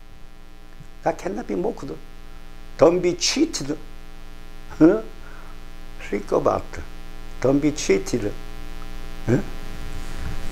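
An elderly man speaks calmly and close into a microphone, in short phrases with pauses.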